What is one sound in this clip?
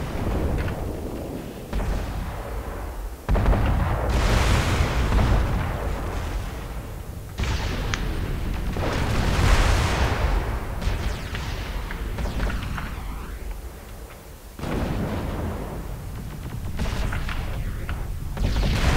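Gunfire and explosions boom across open ground.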